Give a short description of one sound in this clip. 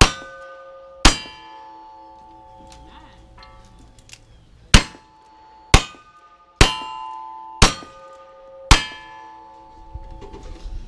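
Metal targets ring out after each shot.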